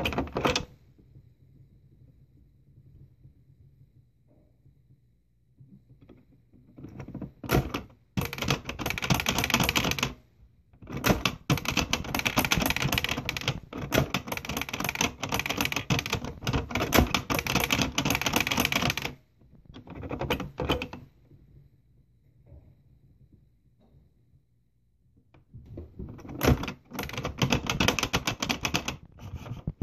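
Fingers press plastic keys on a toy computer with soft clicks.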